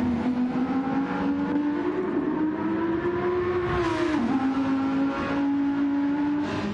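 A racing car engine roars loudly, rising in pitch and dropping briefly as it shifts gear.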